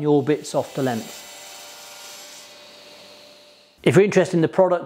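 A table saw whirs as it cuts through wood.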